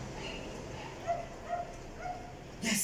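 A dog whimpers softly a few times.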